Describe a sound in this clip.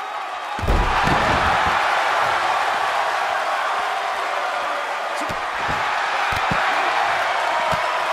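Heavy blows thud as one wrestler strikes another.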